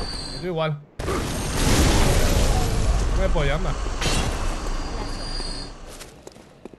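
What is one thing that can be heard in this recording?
Heavy blades swing and strike in a fight.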